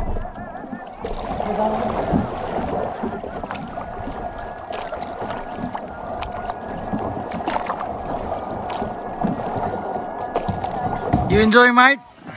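A paddle splashes into the water with each stroke.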